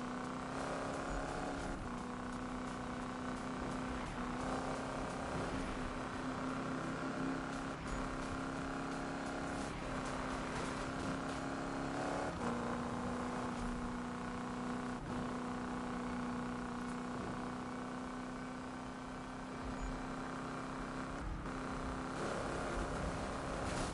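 A car engine roars steadily at high speed, shifting gears now and then.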